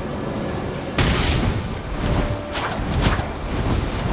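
A sword slashes with a swift swoosh.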